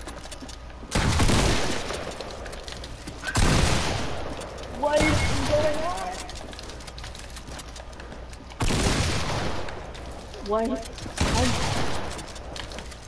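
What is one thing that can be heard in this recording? Building pieces slam into place with loud whooshing crashes, again and again.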